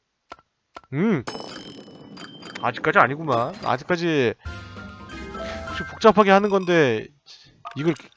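A game plays a cheerful reward jingle.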